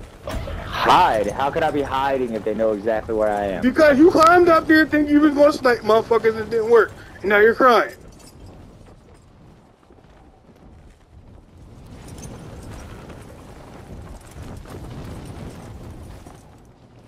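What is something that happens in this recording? Wind rushes steadily past during a parachute descent.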